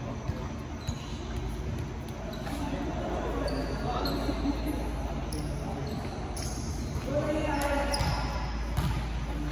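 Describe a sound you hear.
Young men talk and call out in a large echoing hall.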